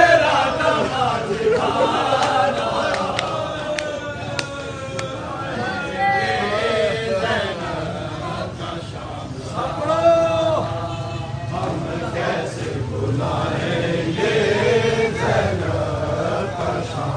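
Men beat their chests in rhythm with dull thumps.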